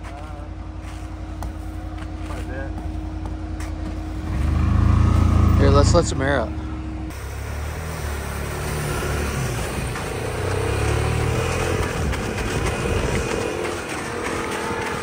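An off-road vehicle engine rumbles and revs.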